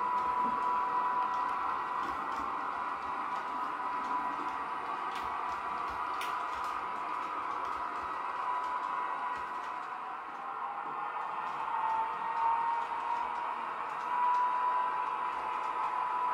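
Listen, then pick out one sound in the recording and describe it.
Small wheels click over rail joints.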